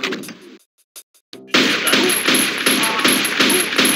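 A pistol fires several shots in quick succession.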